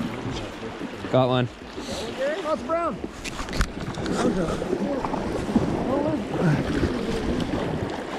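A river rushes and churns close by.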